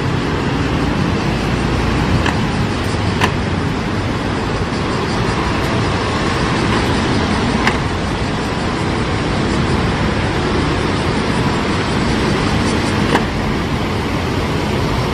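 Steady city traffic hums outdoors.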